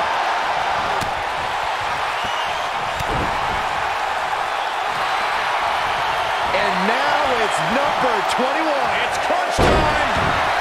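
Bodies thud heavily onto a wrestling ring.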